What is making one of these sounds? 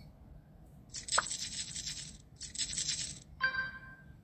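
Game chips clatter onto a table.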